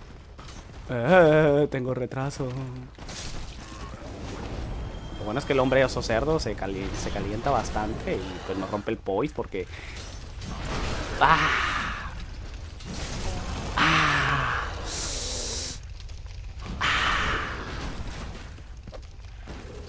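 A large beast roars and growls loudly.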